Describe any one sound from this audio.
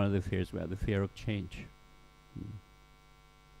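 A middle-aged man speaks emphatically and close up.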